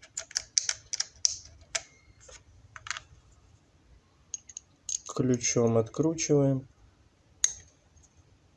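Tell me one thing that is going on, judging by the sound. Small metal parts click and rattle in a plastic case.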